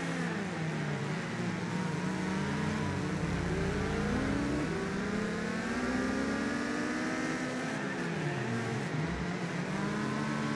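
Tyres screech as a car slides through bends.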